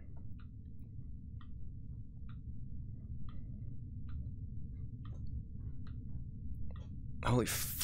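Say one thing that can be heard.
Hands clank on metal ladder rungs in a slow, steady rhythm.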